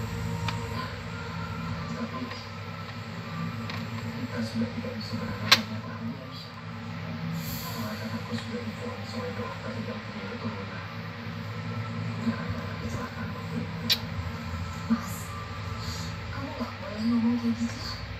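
Beads click softly against each other as fingers move along a string.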